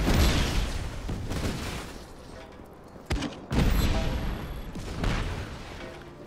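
A loud explosion booms and debris crackles.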